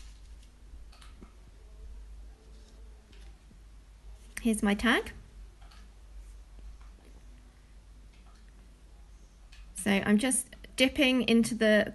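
Small objects are picked up and set down on a wooden table with light knocks.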